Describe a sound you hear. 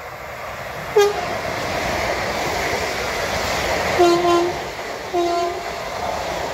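A train horn blares in short blasts.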